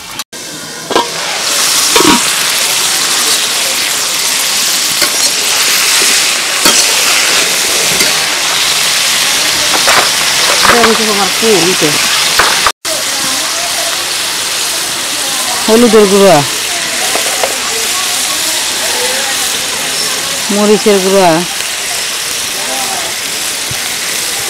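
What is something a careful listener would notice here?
Vegetables sizzle steadily in a hot pan.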